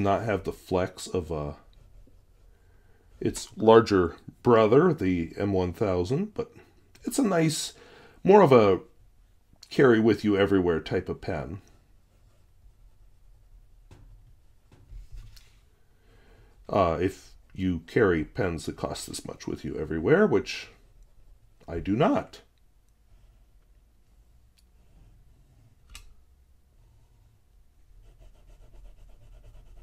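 A fountain pen nib scratches softly across paper.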